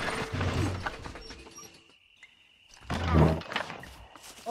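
A wooden crate thuds down.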